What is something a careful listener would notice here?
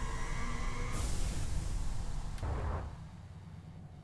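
A rushing whoosh swells as a spaceship jumps away.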